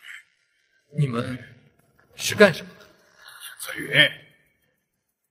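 A middle-aged man shouts with animation, close by.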